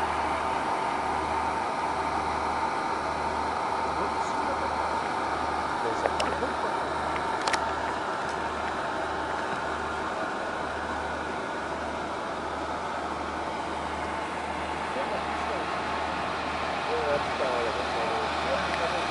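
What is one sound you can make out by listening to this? A diesel railcar engine idles steadily nearby.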